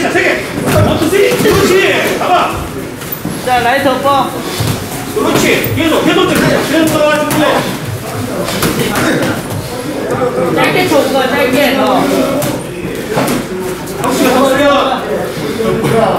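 Boxing gloves thud against each other in quick punches.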